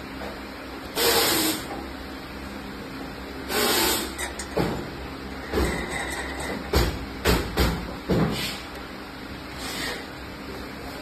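Metal rods clink and rattle against metal.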